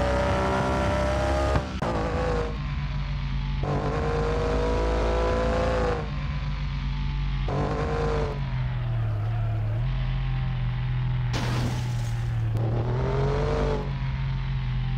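Tyres squeal in long bursts as a car drifts.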